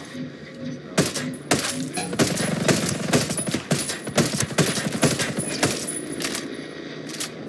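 Rapid gunshots crack sharply in bursts.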